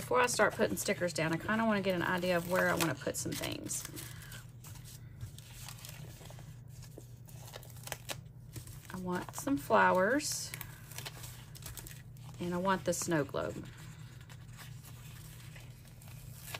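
A sticker peels off its backing with a soft tearing sound.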